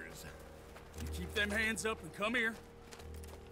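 A man calls out orders sternly.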